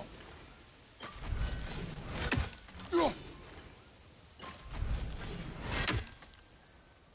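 A heavy axe hits and lands with a deep rumbling thud.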